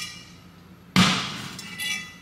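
A heavy iron pan clunks down on a stovetop.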